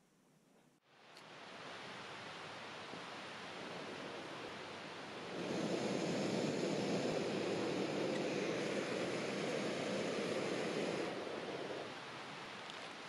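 A camping gas stove hisses and roars steadily.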